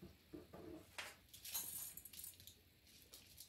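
Rice grains pour and patter into a metal bowl.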